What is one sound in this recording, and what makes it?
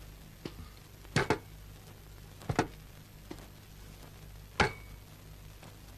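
Objects clatter onto a desk.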